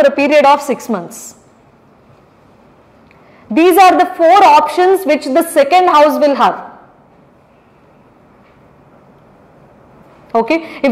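A young woman lectures calmly into a microphone, with pauses between phrases.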